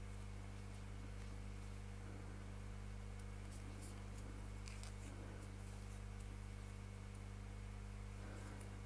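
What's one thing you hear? A crochet hook pulls yarn through stitches.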